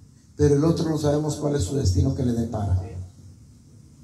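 An older man speaks or sings through a microphone over loudspeakers.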